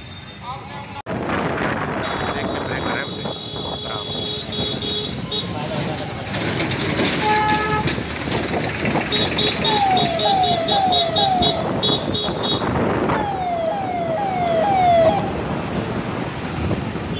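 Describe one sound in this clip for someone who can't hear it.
A vehicle engine roars as it drives along a road.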